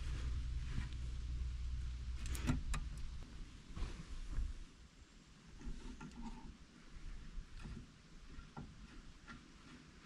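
Metal parts click as a brake caliper is handled.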